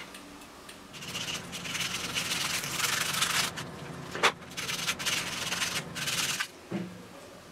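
A plastic scraper scrapes hard and rasps against metal.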